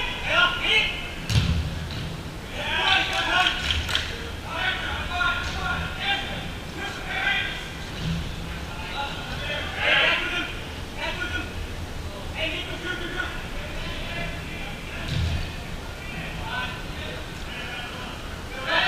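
Men shout and call out across a large echoing indoor hall.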